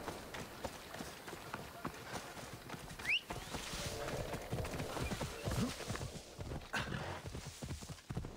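Footsteps crunch quickly through dry grass.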